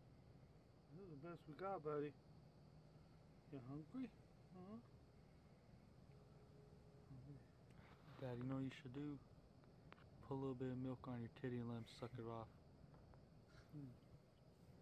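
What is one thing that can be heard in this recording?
A man speaks softly and gently close by.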